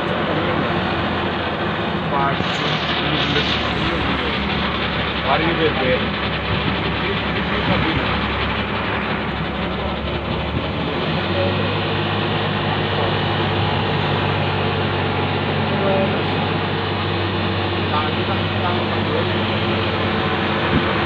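Waves splash against a boat's hull.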